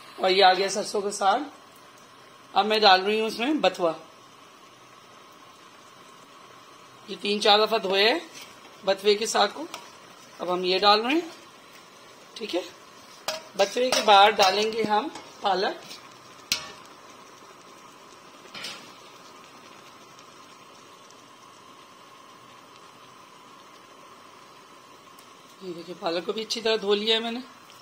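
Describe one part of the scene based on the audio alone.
Greens simmer softly in a steaming pot.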